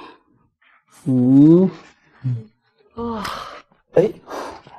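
A young man exclaims in surprise with a rising voice.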